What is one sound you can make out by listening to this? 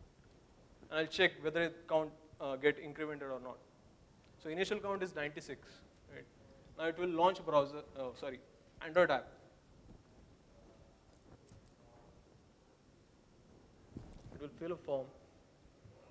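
A young man speaks through a microphone in a large hall, pausing between phrases.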